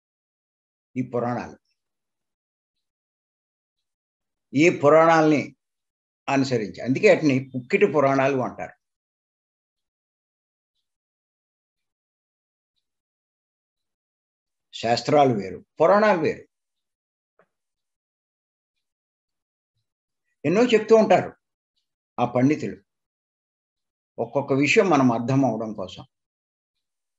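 An elderly man speaks with animation in bursts over an online call, with long pauses between.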